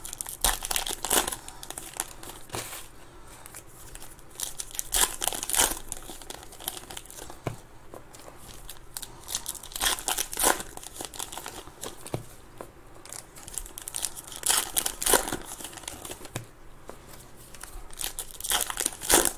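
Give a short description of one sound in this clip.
Foil card wrappers crinkle and tear as they are ripped open.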